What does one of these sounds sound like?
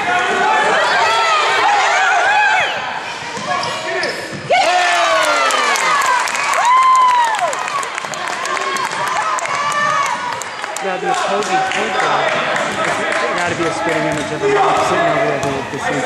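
Young girls shout and cheer in a large echoing gym.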